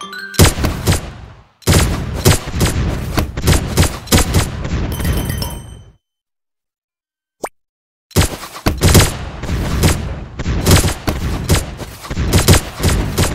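Guns fire in rapid bursts with sharp bangs.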